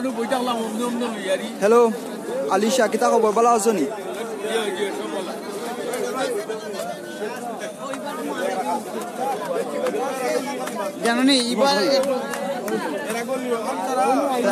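A crowd of men talk and call out all around, close by.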